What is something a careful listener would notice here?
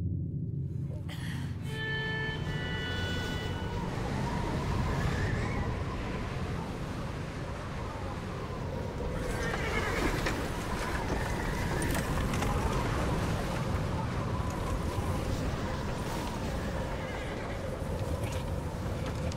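Wind blows hard through trees.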